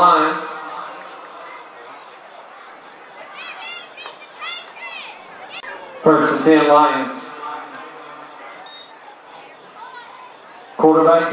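A crowd cheers and shouts from the stands outdoors.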